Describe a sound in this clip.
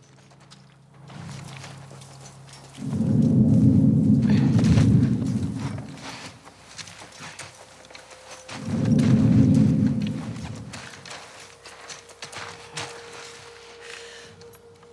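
Tall grass rustles and swishes as someone crawls through it.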